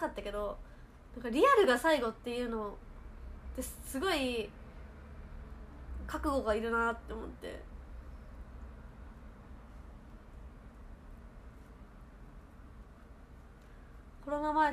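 A young woman speaks softly and calmly, close to a microphone, with pauses.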